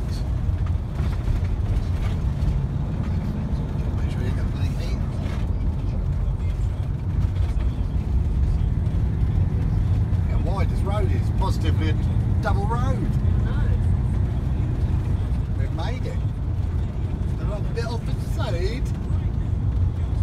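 Wind buffets the microphone outdoors with a steady low rumble.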